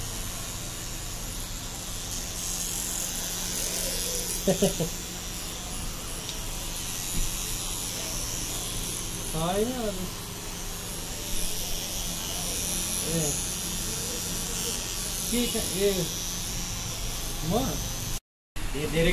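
A tattoo machine buzzes steadily up close.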